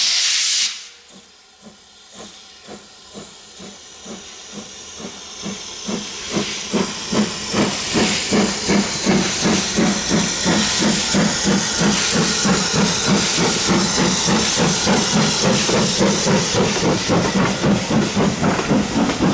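A steam tank locomotive chuffs as it approaches and passes.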